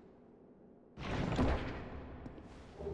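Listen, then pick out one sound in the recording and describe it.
A heavy wooden chest lid creaks open.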